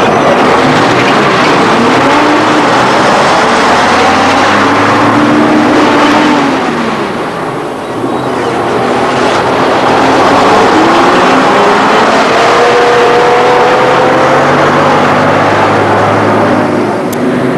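Heavy truck engines roar and rev as trucks drive past.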